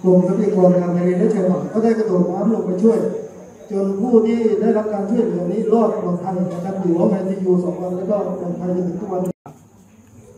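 A man speaks steadily through a microphone in a room with some echo.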